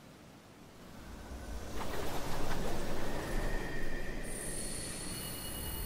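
A whooshing swell of sound sweeps past.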